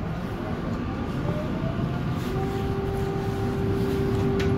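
A tram's electric motor whines, rising in pitch.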